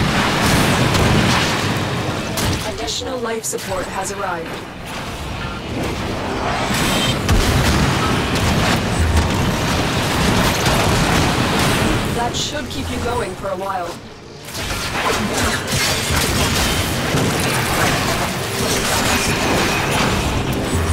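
Weapons fire and blasts crackle and boom.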